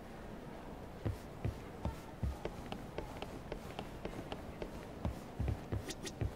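Footsteps tap quickly on a hard floor as a man runs.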